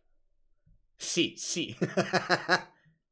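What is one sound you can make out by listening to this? A young man speaks into a headset microphone.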